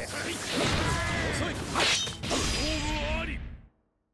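Blows and whooshing strikes crack in quick succession.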